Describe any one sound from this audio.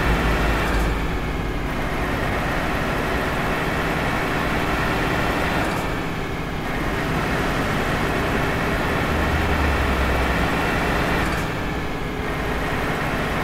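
A truck engine hums steadily while driving on a road.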